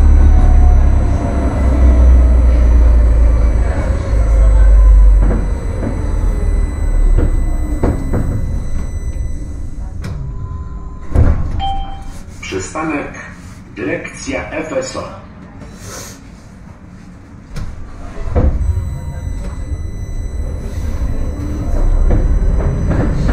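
A tram rumbles along the rails, its wheels clattering steadily.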